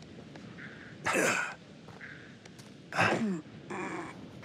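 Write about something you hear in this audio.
A man grunts as he climbs a wall.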